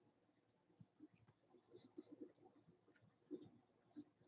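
A card is set down softly on carpet.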